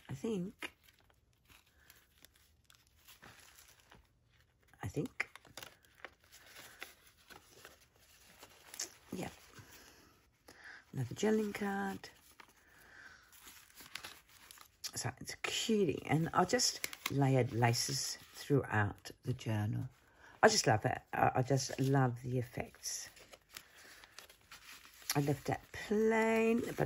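Stiff paper pages rustle softly as they are turned.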